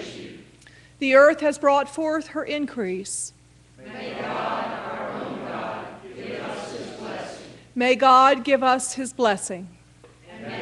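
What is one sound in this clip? A man chants a line alone through a microphone.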